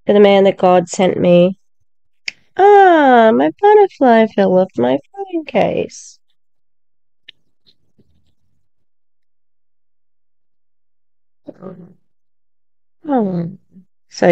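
An older woman talks with animation over an online call.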